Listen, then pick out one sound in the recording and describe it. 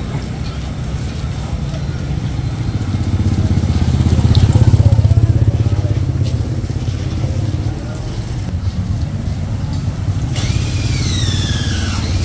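Motorbike engines hum and putter past nearby.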